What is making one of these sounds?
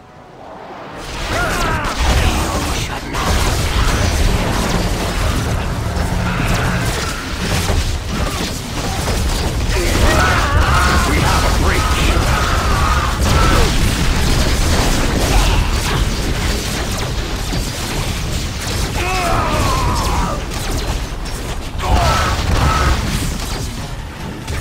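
Explosions boom and crackle in a game battle.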